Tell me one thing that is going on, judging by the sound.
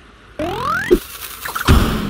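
A cartoon bomb whistles upward as it is launched.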